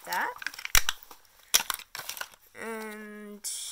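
Paper and a sticker crinkle and peel between fingers.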